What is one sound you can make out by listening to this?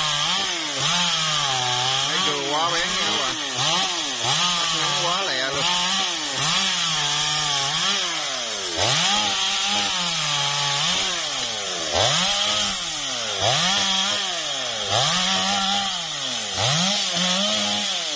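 A chainsaw engine revs up and down repeatedly while cutting through branches.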